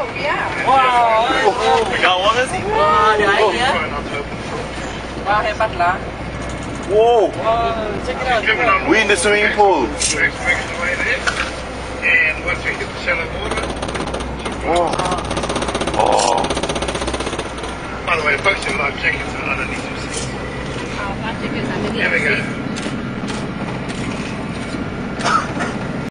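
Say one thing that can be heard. Water rushes and splashes against a moving vehicle.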